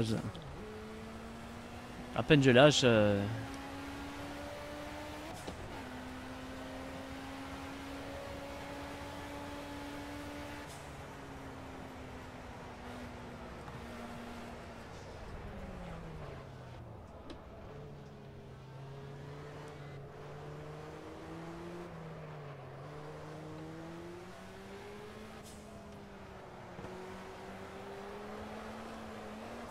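A racing car engine drones steadily, climbing in pitch as it speeds up and dropping as it slows.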